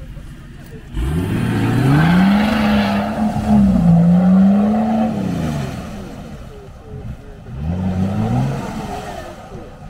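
An engine revs hard as an off-road vehicle churns through mud.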